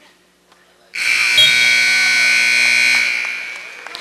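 A loud buzzer sounds steadily for about two seconds.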